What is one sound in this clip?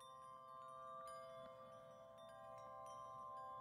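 A video game plays a short chime as an item is found.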